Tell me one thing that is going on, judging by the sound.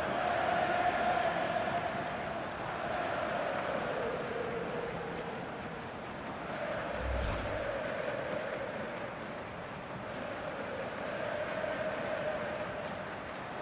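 A large crowd roars and chants loudly throughout.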